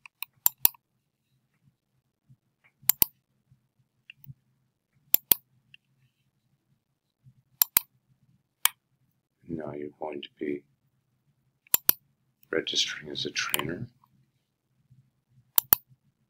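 A computer mouse clicks sharply.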